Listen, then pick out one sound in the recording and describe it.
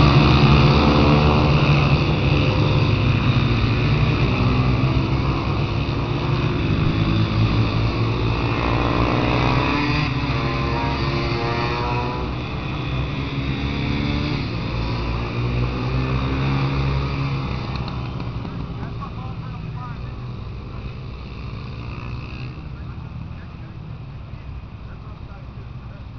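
Several dirt bike engines whine and rev loudly as the motorcycles race past, then fade away.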